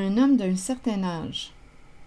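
Fingers tap and slide playing cards on a table.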